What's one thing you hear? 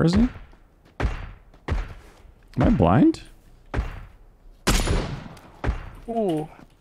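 Rifle shots ring out one at a time with a sharp crack and echo.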